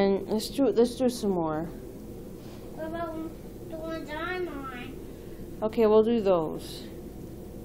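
A young child talks and squeals nearby in a high voice.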